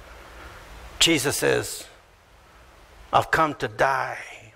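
A middle-aged man speaks with emphasis into a microphone.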